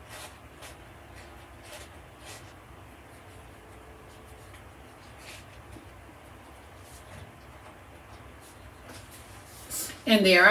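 Paper rustles and a wire spiral clicks softly as hands handle a small notebook.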